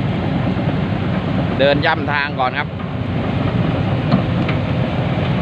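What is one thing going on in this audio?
A diesel engine of an excavator rumbles steadily.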